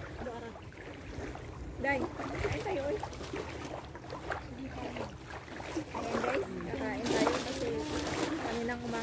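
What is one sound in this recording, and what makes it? Young women talk and laugh with animation outdoors.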